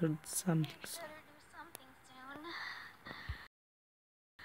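A young boy speaks calmly, up close.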